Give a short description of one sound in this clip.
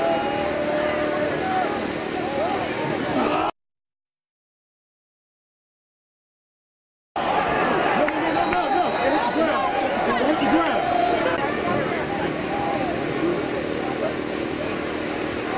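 Young men on the sideline shout and call out.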